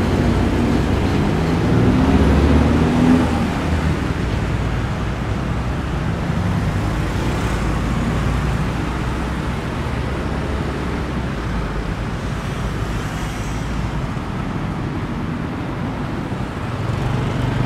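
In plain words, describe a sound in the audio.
Motorbikes pass by with a buzzing engine.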